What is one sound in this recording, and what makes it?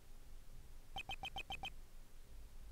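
Short electronic blips tick in quick succession.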